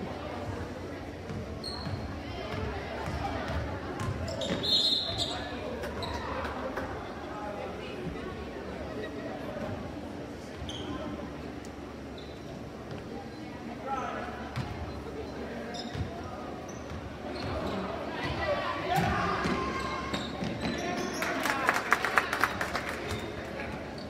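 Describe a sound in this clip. A crowd of spectators murmurs and cheers in an echoing gym.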